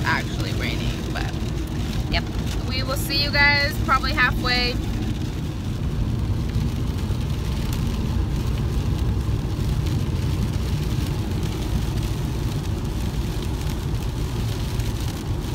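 A car engine and tyres rumble steadily on a wet road.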